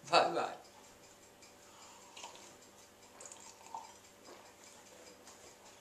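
A man slurps a drink through a straw.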